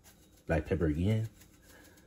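Seasoning is shaken from a shaker and patters softly onto meat.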